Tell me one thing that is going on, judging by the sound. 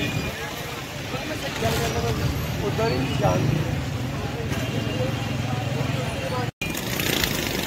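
A busy street crowd murmurs outdoors.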